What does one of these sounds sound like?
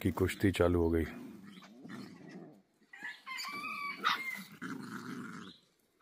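Puppies scuffle and growl softly as they wrestle.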